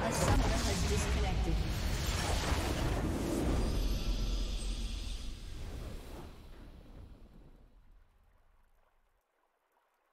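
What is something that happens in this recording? A triumphant victory fanfare swells loudly and then fades away.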